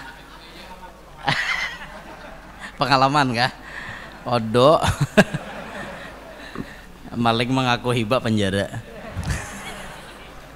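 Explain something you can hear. A group of men laugh in the background.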